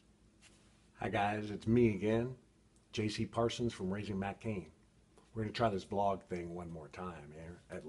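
A middle-aged man speaks with animation close to a microphone.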